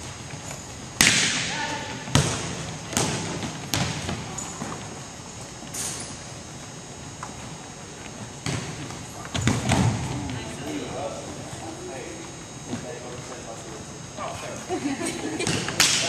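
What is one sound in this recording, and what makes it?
A volleyball smacks off hands and the floor, echoing in a large hall.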